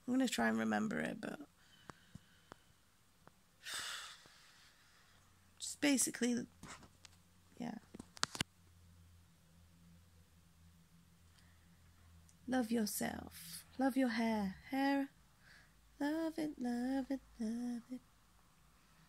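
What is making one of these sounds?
A young woman speaks casually and close up, in short bursts with pauses.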